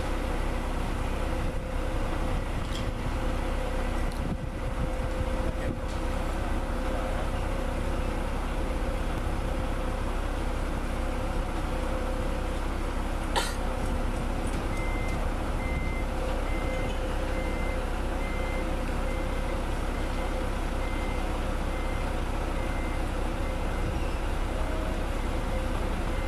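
A crane's hydraulics whine.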